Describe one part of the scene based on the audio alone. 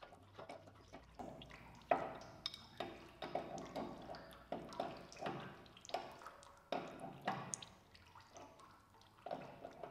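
Metal tools clink and tap against machinery.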